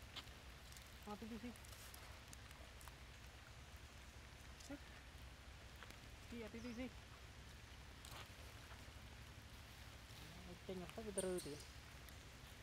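Monkeys give short squeaky calls nearby.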